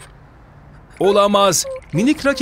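A high-pitched cartoon voice speaks excitedly up close.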